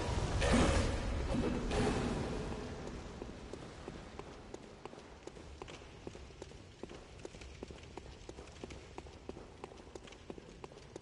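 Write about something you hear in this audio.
Footsteps tread quickly and evenly on hard ground.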